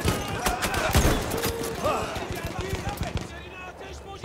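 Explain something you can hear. Gunshots crack and pop in rapid bursts nearby.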